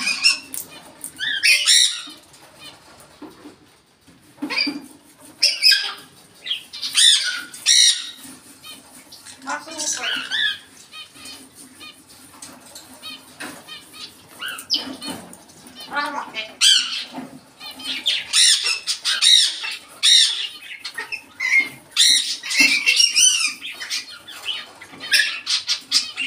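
A parrot whistles and chatters in bursts nearby.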